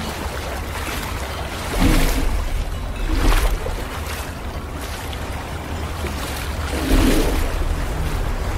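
Water sloshes and laps close by.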